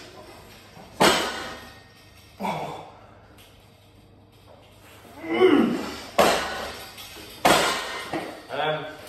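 Metal weights clank on an exercise machine.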